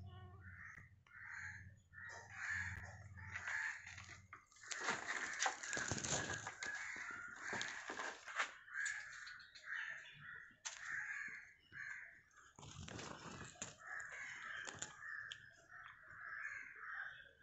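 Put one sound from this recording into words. Dry twigs rustle and scrape.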